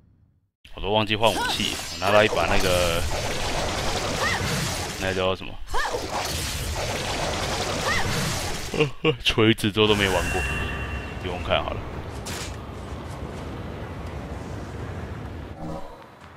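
Blades slash and clash with sharp metallic swishes.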